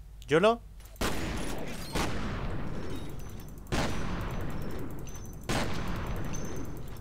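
Gunfire bursts loudly in rapid shots.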